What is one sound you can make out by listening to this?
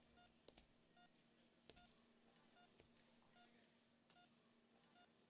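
A medical monitor beeps steadily at a regular pace.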